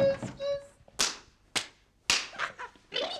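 Two men clap their hands.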